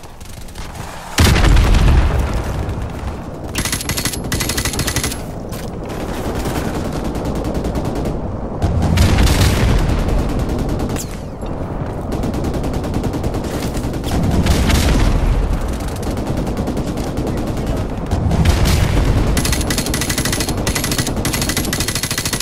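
A rifle fires rapid bursts of gunshots close by.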